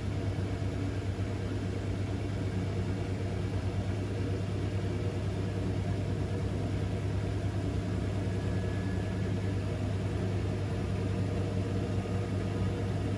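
A washing machine drum hums steadily as it spins.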